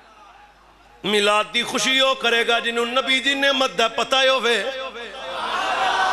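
A man chants loudly in a long, drawn-out melody through a microphone.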